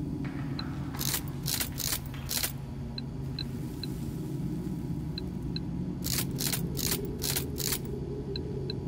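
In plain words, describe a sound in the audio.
Electricity crackles and sizzles along a circuit.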